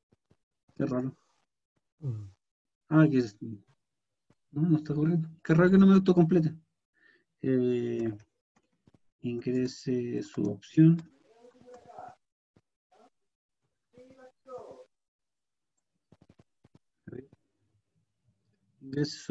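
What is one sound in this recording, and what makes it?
A man speaks calmly through a microphone, as on an online call.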